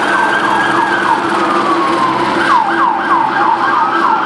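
Car tyres screech as a car spins in circles.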